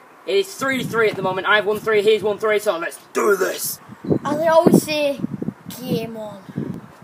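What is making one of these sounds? A teenage boy talks with animation, close by.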